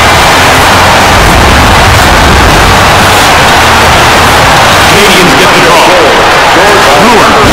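A large crowd roars steadily in an echoing arena.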